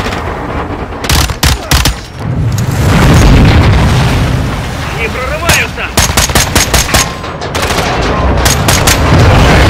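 A rifle fires in rapid bursts of shots.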